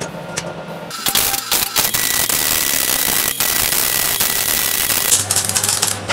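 An angle grinder grinds steel.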